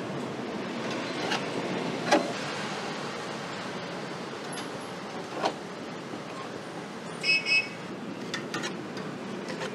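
Plastic tongs tap and clack against a metal wire rack.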